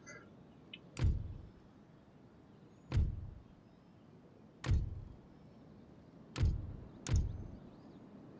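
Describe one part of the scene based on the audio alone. Soft whooshing thumps sound as menu panels open and close.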